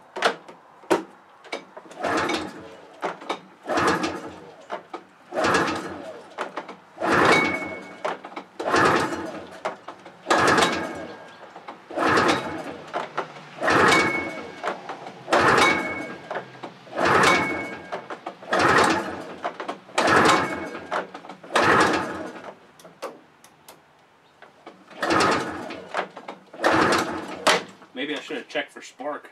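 A recoil starter cord is pulled again and again with a rasping whir.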